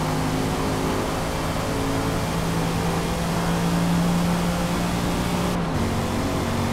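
A car engine roars at high revs, climbing steadily.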